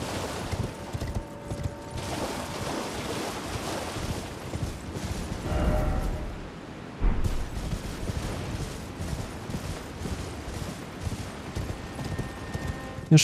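Footsteps run over grass and stone.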